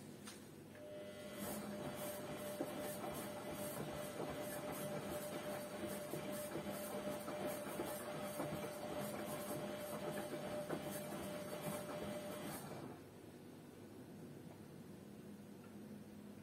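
A washing machine drum turns with a steady whirring hum.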